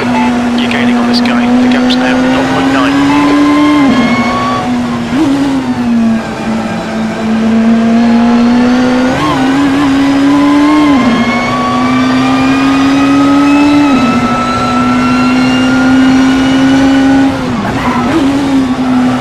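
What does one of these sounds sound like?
A racing car engine roars loudly, climbing in pitch and dropping at each gear change.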